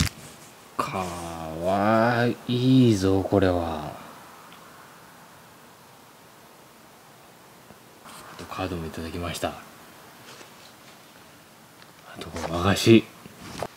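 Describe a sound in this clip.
A cat meows loudly several times, close by.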